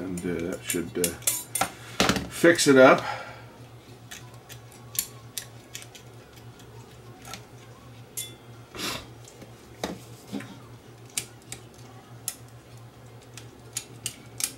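A plastic case clicks and knocks as it is handled.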